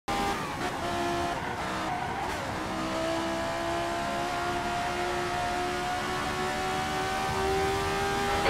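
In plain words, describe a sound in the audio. A racing car engine roars at high revs, shifting gears and rising in pitch.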